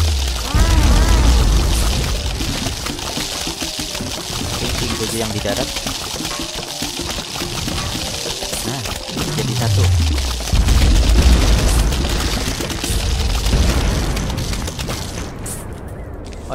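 Cartoonish game explosions and magic effects crackle and boom loudly, then die away.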